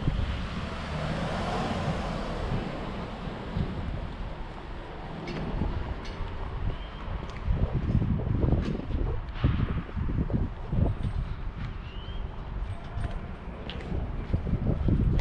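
Footsteps walk along a paved pavement outdoors.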